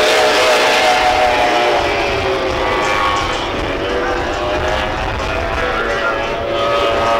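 A racing powerboat engine roars at high speed across the water.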